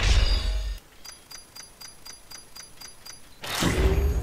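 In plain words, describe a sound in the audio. Quick, even electronic ticks count up steadily.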